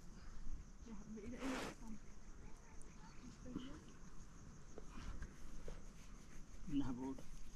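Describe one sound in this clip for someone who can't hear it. A woman talks calmly nearby outdoors.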